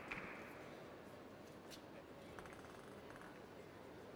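A table tennis ball clicks against paddles and the table.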